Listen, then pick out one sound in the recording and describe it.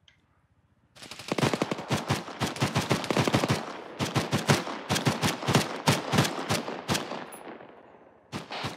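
Rapid gunfire rattles in long bursts nearby.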